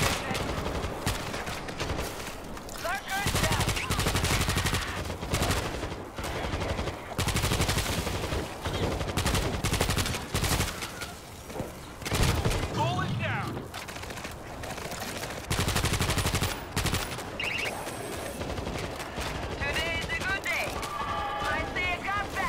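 Rifle shots fire in rapid bursts, close and loud.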